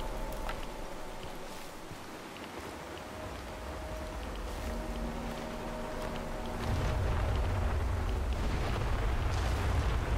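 Footsteps shuffle softly through grass and undergrowth.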